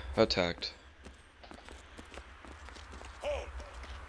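Footsteps run over rocky ground.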